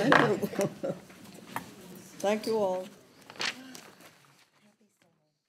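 An elderly woman speaks warmly into a microphone.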